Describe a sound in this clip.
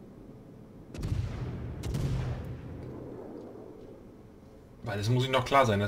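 A heavy gun blast booms and rumbles away.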